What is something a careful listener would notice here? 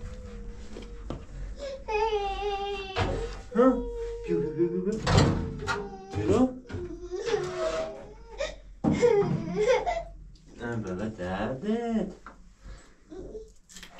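Metal clinks and knocks at a wood stove.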